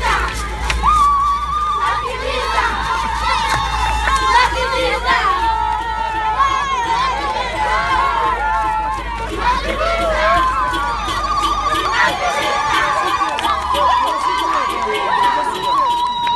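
A crowd of people sings and chants loudly together outdoors.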